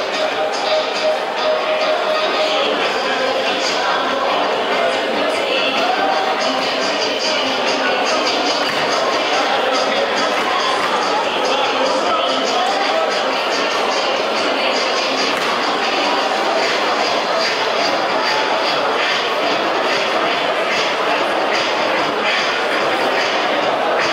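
Dancers' shoes tap and stamp on a wooden floor in a quick rhythm.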